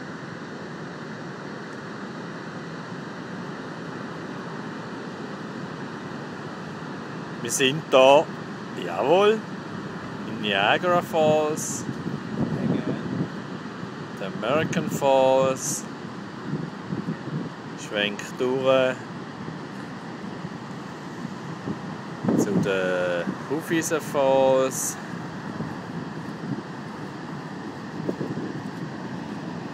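A waterfall roars steadily outdoors.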